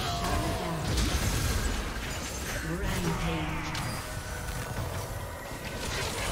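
Fantasy battle sound effects whoosh and crackle as spells hit.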